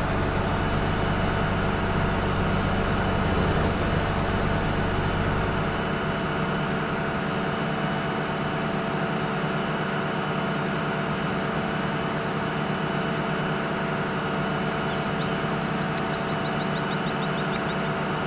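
A combine harvester engine drones steadily as it cuts through a crop.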